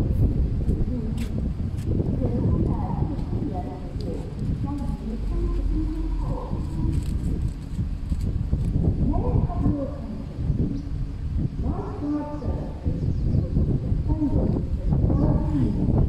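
A small spaniel scratches and kicks at dry dirt and leaves with its paws.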